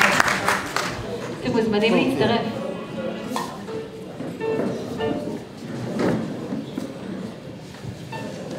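A young woman speaks through a microphone and loudspeakers.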